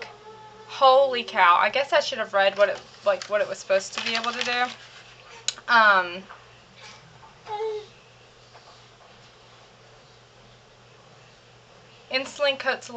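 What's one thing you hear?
A young woman talks in a chatty, animated way, close to the microphone.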